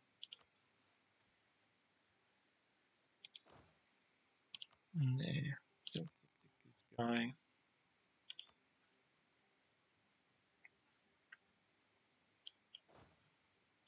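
Short soft clicks of a game menu sound now and then.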